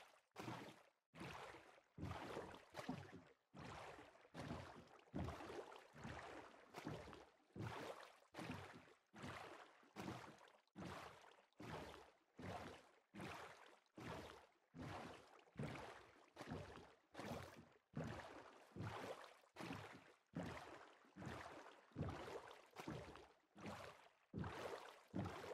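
Oars splash in water with a quick, steady rhythm.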